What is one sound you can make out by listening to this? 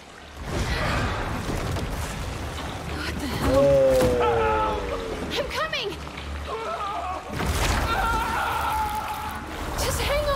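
Water splashes as a woman wades through it.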